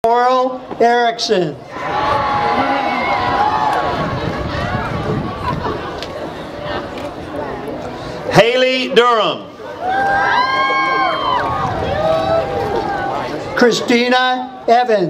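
A large outdoor crowd cheers and claps.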